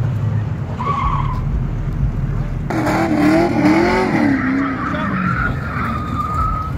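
A car engine roars and revs at a distance.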